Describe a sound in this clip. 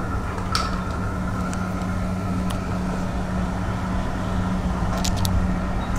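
Liquid glugs as it pours from a plastic canister into a cup.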